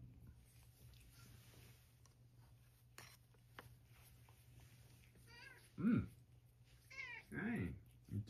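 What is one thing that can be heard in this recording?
A cat laps water from a bowl.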